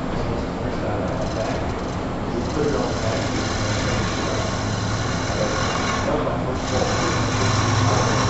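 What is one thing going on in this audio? A gouge scrapes and shaves spinning wood with a rough rasping noise.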